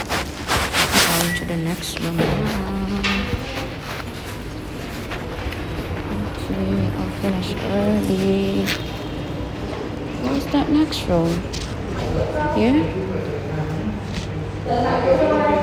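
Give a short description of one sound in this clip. Young people talk nearby in an echoing room.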